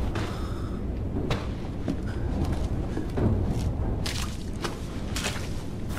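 Footsteps thud on creaking wooden stairs.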